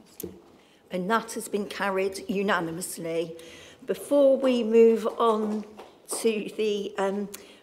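An elderly woman speaks calmly and clearly through a microphone.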